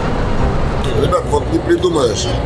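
A man speaks loudly with animation close by.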